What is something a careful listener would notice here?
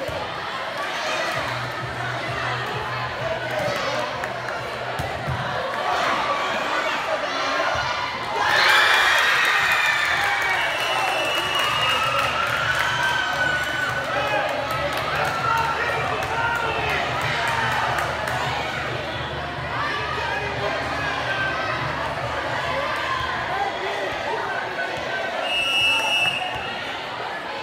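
A large crowd of young people cheers and shouts in a large echoing hall.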